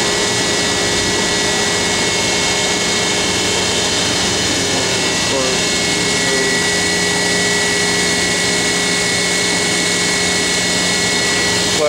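Machinery hums steadily nearby.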